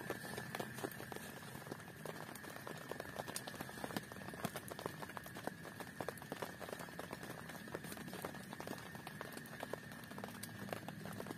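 A plastic tarp rustles and crinkles as it is pulled and spread out.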